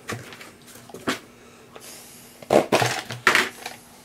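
Cardboard rustles and scrapes as a box is moved.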